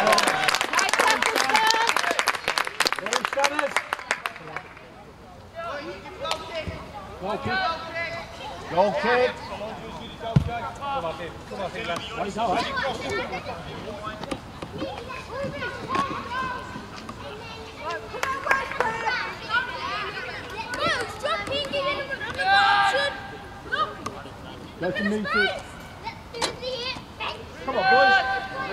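Young men shout and call to each other outdoors at a distance.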